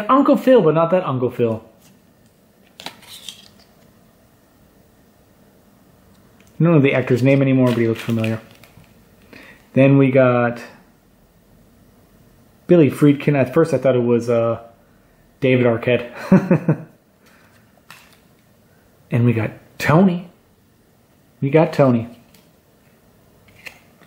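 Trading cards rustle and slide softly between fingers.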